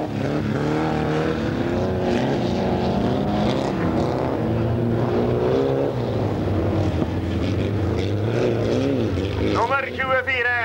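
Racing car engines roar and rev loudly outdoors.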